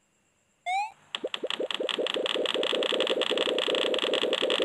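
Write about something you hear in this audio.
Upbeat game music starts and plays steadily.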